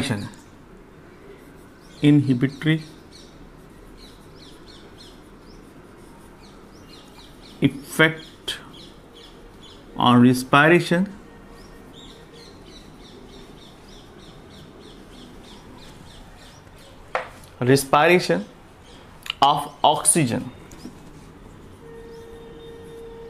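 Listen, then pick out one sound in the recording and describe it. A marker squeaks faintly as it writes on a whiteboard.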